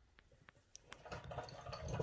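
Fingers handle and twist a knob with faint clicks.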